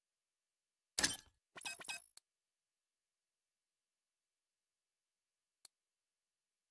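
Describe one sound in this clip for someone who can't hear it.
A game menu whooshes and clicks as items are switched.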